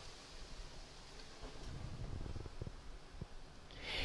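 Cards slide and tap on a table.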